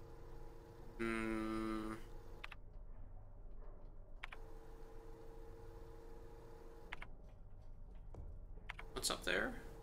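Short electronic menu chimes and clicks sound now and then.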